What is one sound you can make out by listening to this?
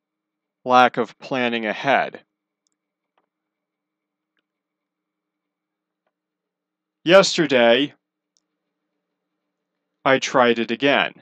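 A young man speaks casually into a close microphone, in short bursts with pauses.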